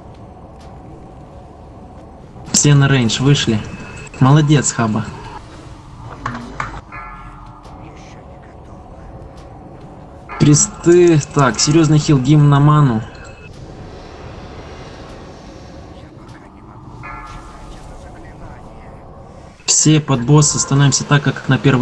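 Magic spells crackle and whoosh in a battle.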